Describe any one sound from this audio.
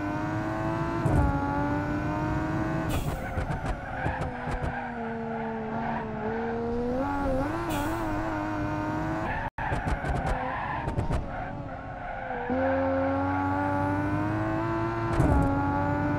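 A car engine revs and changes pitch as it races and drifts.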